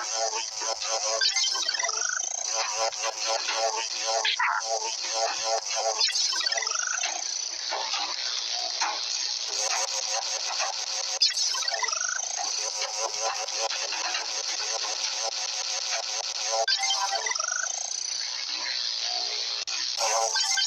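A dragonfly's wings buzz steadily as it flies.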